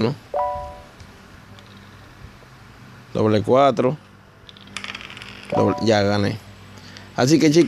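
Dice rattle briefly as they roll.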